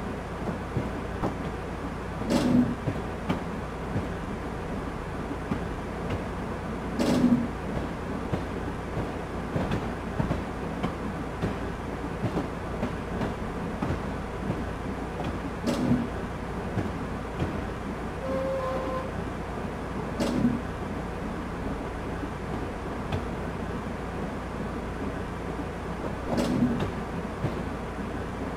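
A train rumbles steadily along a track.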